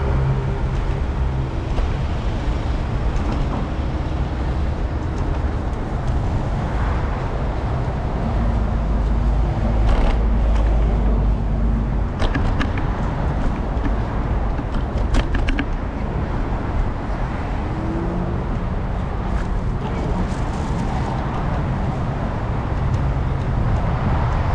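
City traffic hums and rumbles steadily outdoors.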